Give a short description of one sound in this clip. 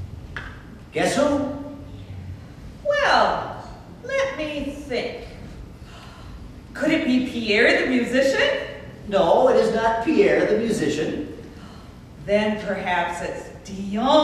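A woman speaks with animation on a stage, heard from the audience.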